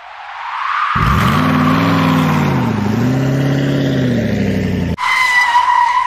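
A small car engine hums and revs up and down.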